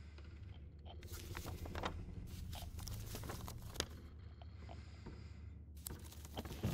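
A paper map rustles as it is unfolded.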